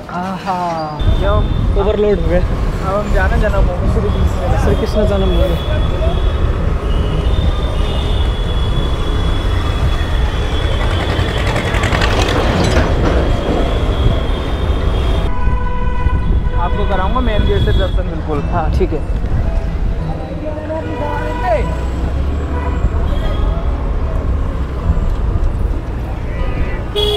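A motorbike engine hums steadily while riding along a street.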